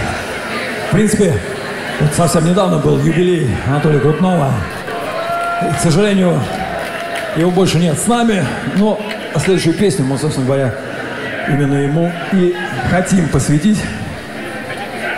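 A man talks through a loudspeaker to the crowd, with animation.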